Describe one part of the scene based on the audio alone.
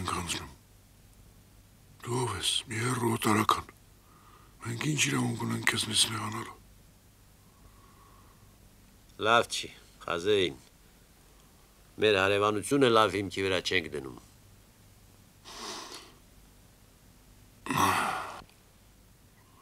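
An elderly man speaks gruffly and close by.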